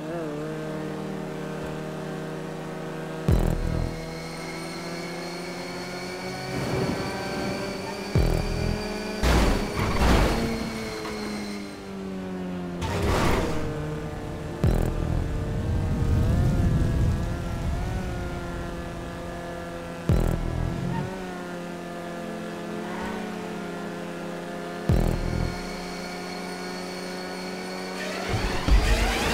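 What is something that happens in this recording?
A small car engine hums steadily, rising and falling as it revs.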